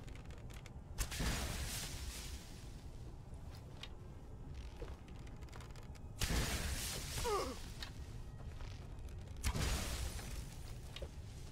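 Magic blasts burst with a loud whoosh.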